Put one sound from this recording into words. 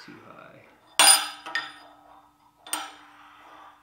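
Metal pieces clink against a metal surface.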